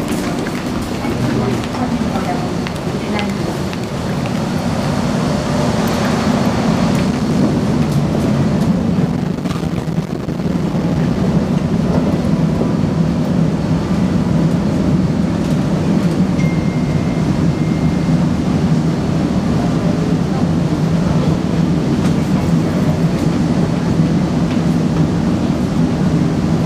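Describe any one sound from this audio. A train rumbles steadily with a low hum.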